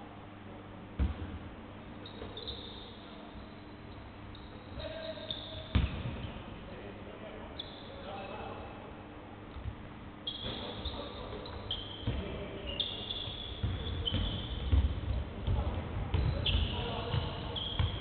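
A basketball thumps as it bounces on the court.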